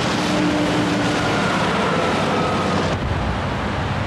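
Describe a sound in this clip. A bus engine roars as the bus drives past.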